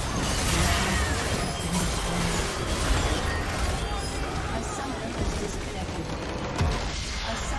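Game spell effects blast and crackle in a fight.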